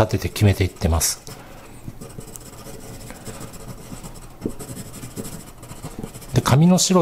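A pencil scratches softly across paper in quick strokes.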